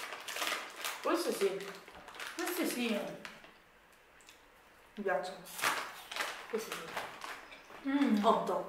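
A plastic snack bag crinkles.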